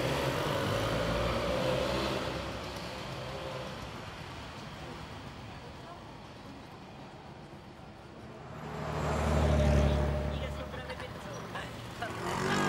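A motor scooter engine putters nearby.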